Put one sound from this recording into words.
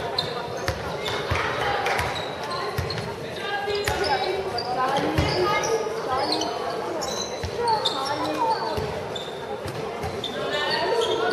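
Young girls shout and call out to each other in a large echoing hall.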